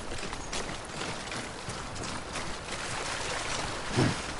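Water splashes around wading feet.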